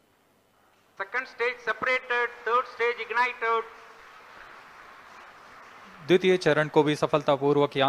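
A man speaks through a microphone, heard over loudspeakers in a large room.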